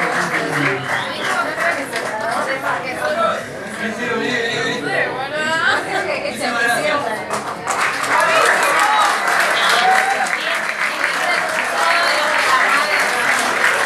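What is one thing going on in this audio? Audience members clap their hands.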